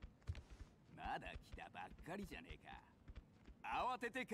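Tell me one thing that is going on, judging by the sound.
A man speaks mockingly.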